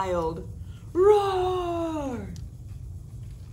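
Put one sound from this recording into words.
A young woman gives a long playful roar.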